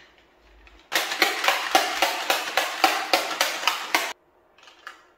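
A shaker bottle rattles as it is shaken hard.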